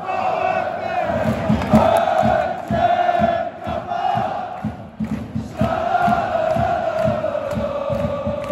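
Crowd members clap their hands in rhythm.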